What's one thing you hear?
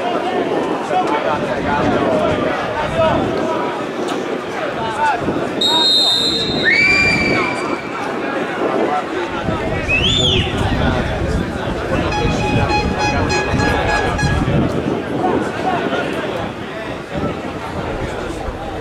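A crowd of spectators murmurs and shouts outdoors.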